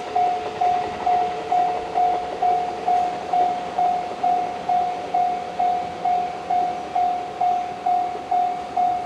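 An electric train rolls slowly toward the listener along the rails.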